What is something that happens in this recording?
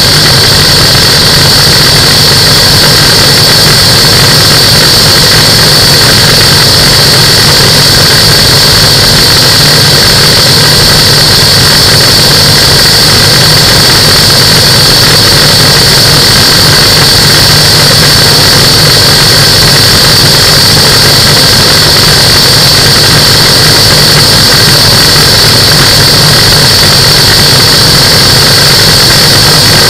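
A light aircraft engine drones steadily and loudly close by.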